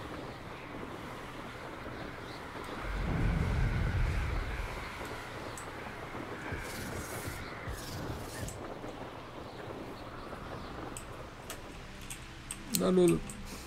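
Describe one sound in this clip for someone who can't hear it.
Wind rushes past steadily during a flight.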